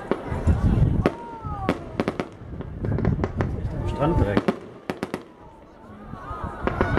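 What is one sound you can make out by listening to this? Fireworks burst with sharp bangs and crackles in the distance.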